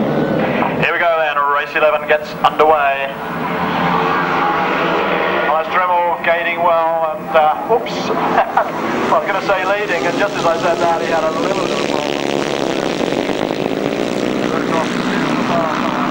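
Motorcycle engines roar and rev loudly as the bikes race past.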